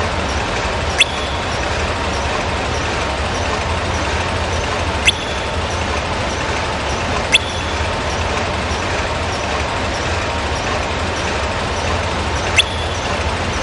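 A short, bright chime sounds several times.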